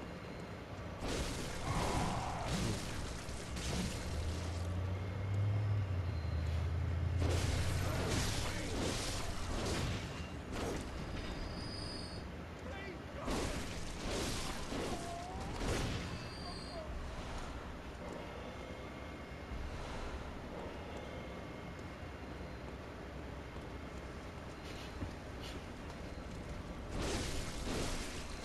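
Blades slash and clang in a fierce fight.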